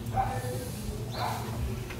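An electronic keyboard is played.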